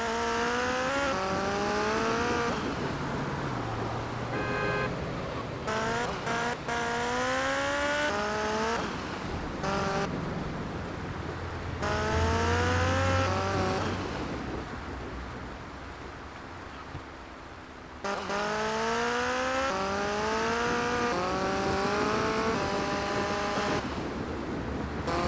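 A motorcycle engine revs up and shifts through gears again and again.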